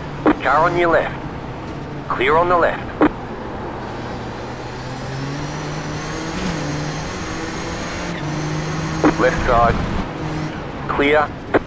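A race car engine drones steadily, its pitch rising and dropping with the gears.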